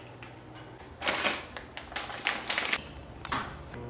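A seasoning bottle rattles as it is shaken.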